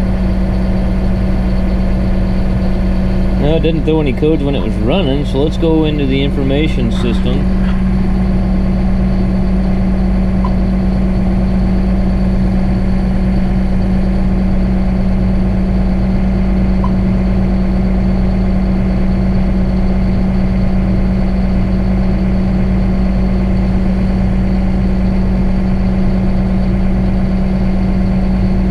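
A tractor engine hums steadily inside a closed cab.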